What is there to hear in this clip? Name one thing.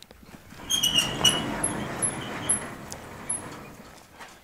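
A metal latch clicks and rattles on a sheet metal door.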